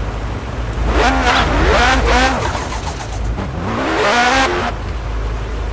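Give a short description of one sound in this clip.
Tyres screech on asphalt during a drift.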